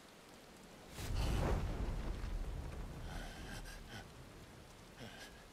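Flames burst with a deep roaring whoosh that slowly dies away.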